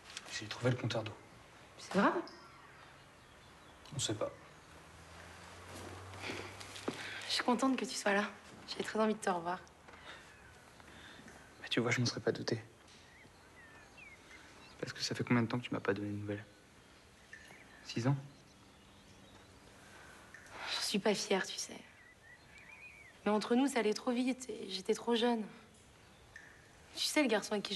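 A young woman speaks softly and playfully close by.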